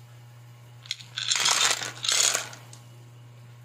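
Clams clatter as they tip into a metal pot.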